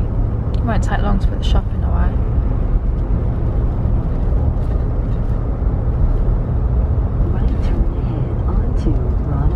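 A car's engine hums and tyres rumble steadily on the road from inside the car.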